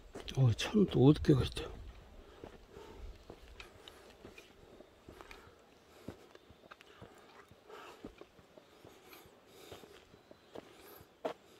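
Footsteps scuff slowly on a paved path outdoors.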